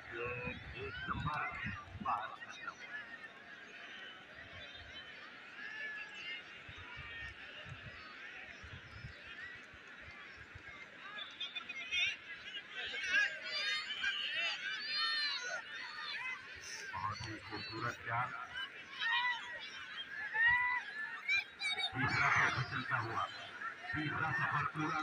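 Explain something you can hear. A crowd of people chatters and shouts across an open field outdoors.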